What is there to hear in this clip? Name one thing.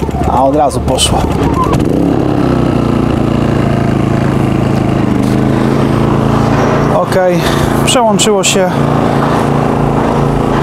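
A small generator engine runs with a steady hum.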